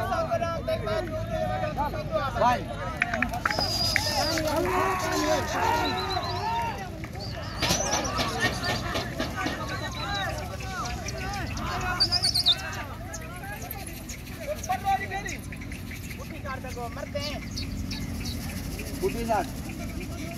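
A crowd of men talks and calls out nearby, outdoors.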